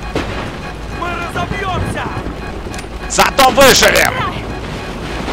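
A man shouts loudly and urgently.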